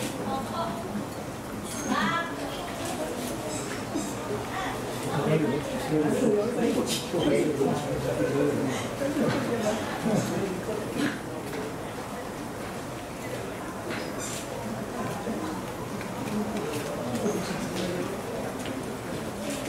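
A crowd of people chatters nearby, outdoors.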